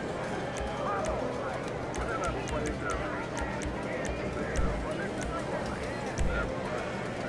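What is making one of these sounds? Short soft clicks tick as a menu is scrolled.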